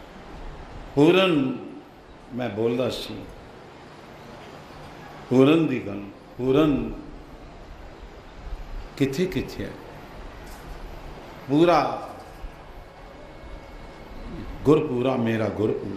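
An elderly man speaks slowly and solemnly into a microphone, in short phrases with pauses.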